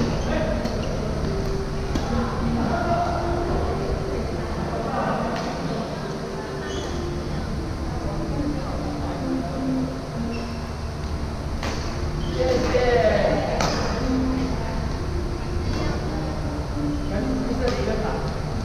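Shuttlecocks are struck with sharp racket pops in a large echoing hall.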